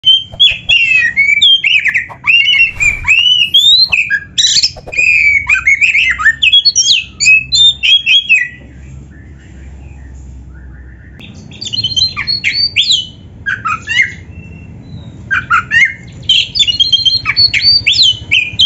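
A songbird sings loud, varied whistling phrases close by.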